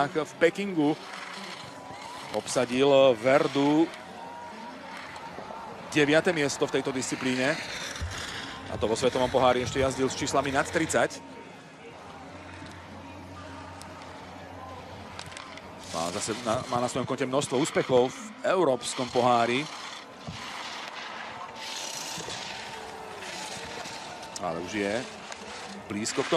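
Skis scrape and hiss over hard snow.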